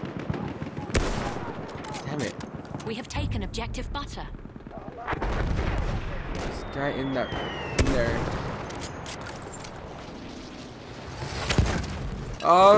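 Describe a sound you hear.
A rifle fires sharp single shots.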